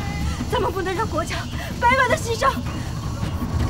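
A young woman speaks urgently and close by.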